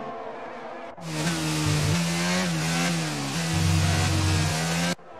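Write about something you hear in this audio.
A racing car engine screams close by, its pitch rising and falling with gear changes.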